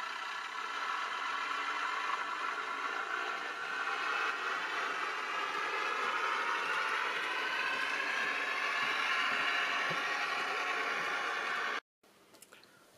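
A model train whirs along its track.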